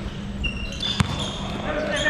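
A basketball bounces on the floor with a hollow thud.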